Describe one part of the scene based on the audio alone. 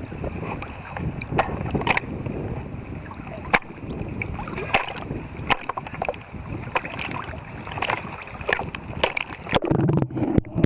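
River rapids rush and splash close by.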